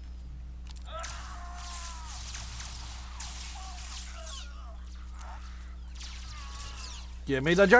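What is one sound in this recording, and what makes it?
Energy blasts crackle and hiss in a fight.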